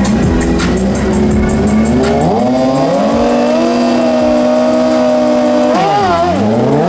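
Motorcycle engines rev loudly and rise in pitch.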